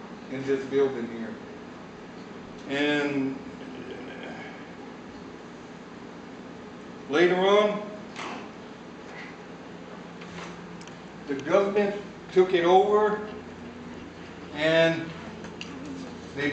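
A man speaks with animation in a room, pausing between phrases.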